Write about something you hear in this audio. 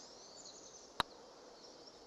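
A golf putter taps a ball once.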